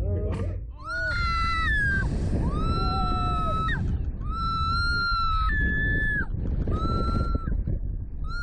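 A man shouts and laughs loudly.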